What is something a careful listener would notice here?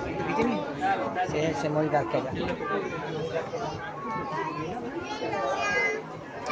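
Several adults chatter nearby.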